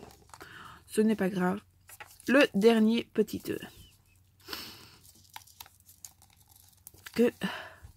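A plastic egg rubs and creaks between fingers.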